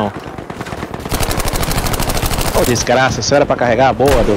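Rapid gunfire crackles close by.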